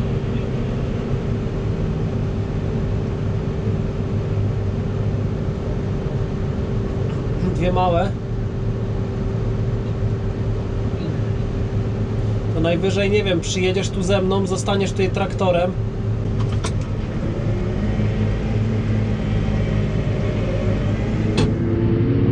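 A combine harvester rumbles and whirs close by.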